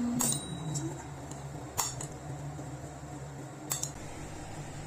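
A metal spoon clinks against a bowl.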